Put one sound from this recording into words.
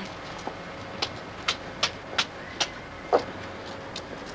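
High heels click on steps.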